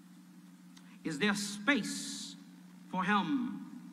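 A man speaks slowly and solemnly into a microphone.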